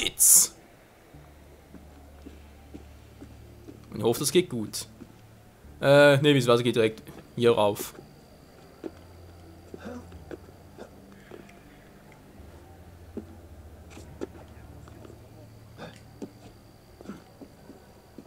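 Footsteps patter softly on stone.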